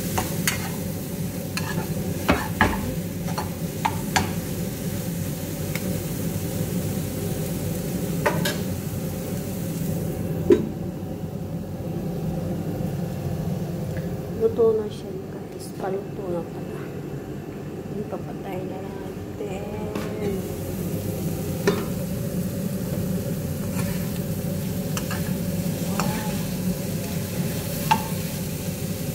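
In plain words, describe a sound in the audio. A metal spatula scrapes and clinks against a frying pan.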